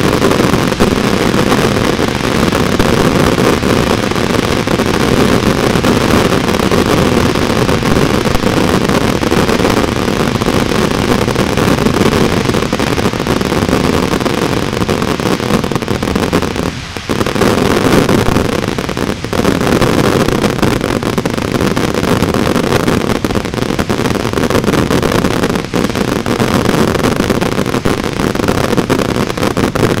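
Fireworks pop and bang rapidly in the air.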